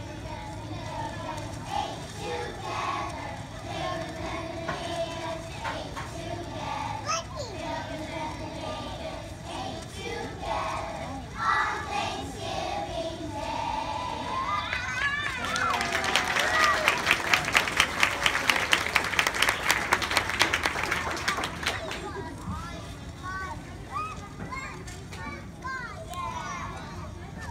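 A choir of young children sings together outdoors.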